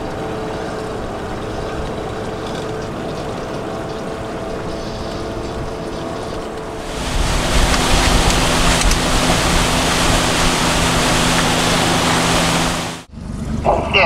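An outboard motor drones steadily.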